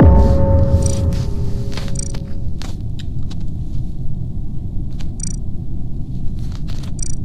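Short electronic beeps sound as menu options are selected.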